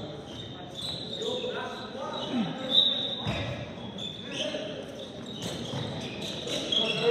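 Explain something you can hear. Young men shout and call out across the court.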